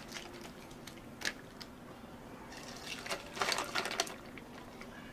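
Ice cubes clink and crackle in a glass.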